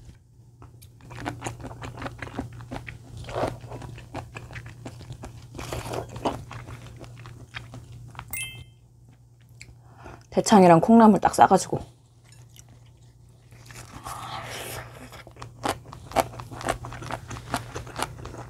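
A young woman chews food noisily, close to a microphone.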